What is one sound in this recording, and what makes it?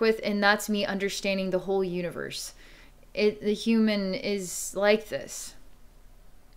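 A young woman speaks calmly and closely into a microphone.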